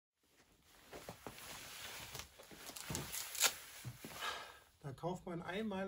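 Shoes rustle and scuff on stone as a man changes footwear.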